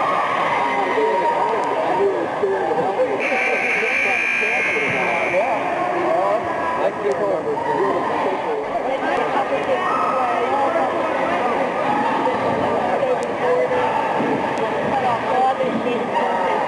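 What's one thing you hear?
A crowd of young people chatters loudly in a large echoing hall.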